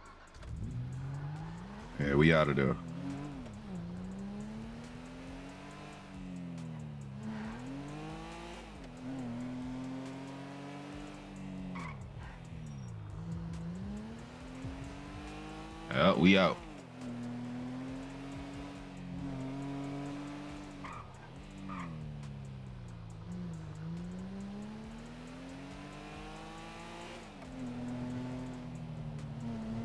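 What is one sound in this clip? A car engine revs up and down as the car speeds along and shifts gears.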